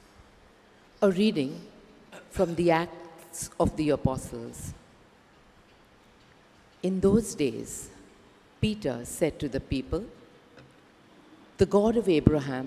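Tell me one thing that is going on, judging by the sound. An elderly woman reads aloud calmly into a microphone in a slightly echoing room.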